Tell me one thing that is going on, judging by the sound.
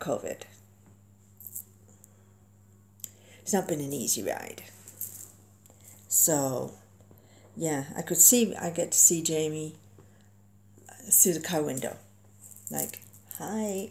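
A middle-aged woman talks calmly and closely into a microphone, with pauses.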